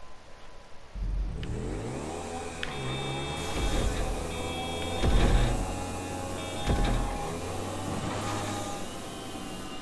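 A motorcycle engine revs loudly, rising and falling in pitch.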